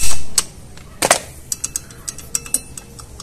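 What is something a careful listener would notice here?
Small metal parts clink against each other by hand.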